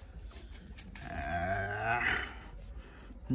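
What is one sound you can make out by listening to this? A puppy whines softly.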